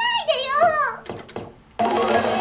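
Slot machine reels stop with sharp clicks.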